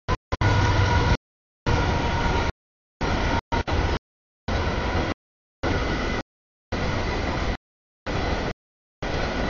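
A crossing bell rings steadily.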